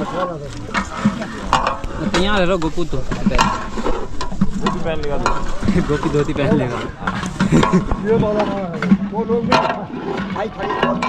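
A metal ladle scrapes and knocks against a cooking pot.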